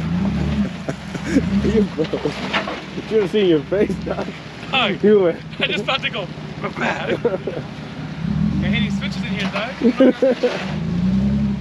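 A man talks nearby from inside a vehicle.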